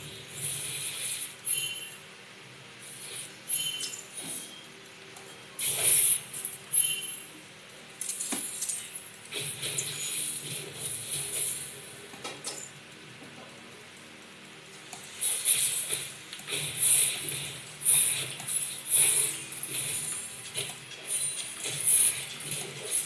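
Buttons on a game controller click softly.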